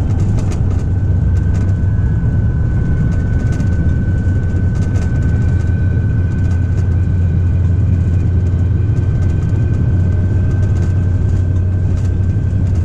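Train wheels squeal with a steady high whine.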